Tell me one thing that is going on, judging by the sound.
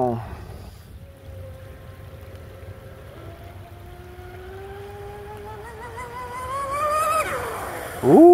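A small model boat motor whines, rising in pitch as the boat speeds across the water.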